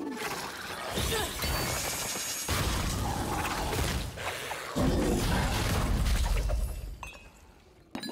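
Magic blasts boom and crackle in a game battle.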